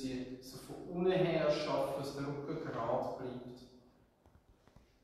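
A man speaks calmly in an echoing room.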